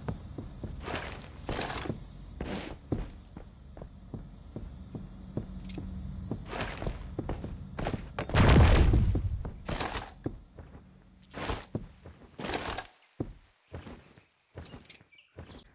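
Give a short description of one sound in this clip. A rifle clicks and rattles as it is handled.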